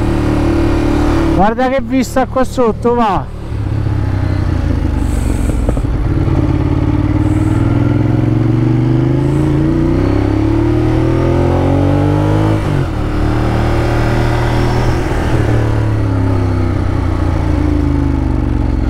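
A motorcycle engine hums steadily and rises and falls in pitch.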